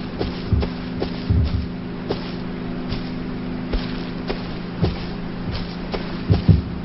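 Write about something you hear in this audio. Footsteps thud softly over grass.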